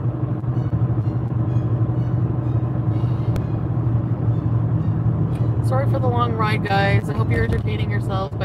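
A car engine hums steadily inside the cabin as it drives.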